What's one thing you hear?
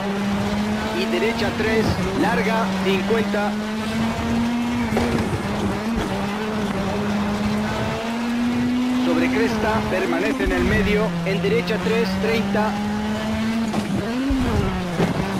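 A rally car engine roars steadily, its pitch rising and dipping with gear changes.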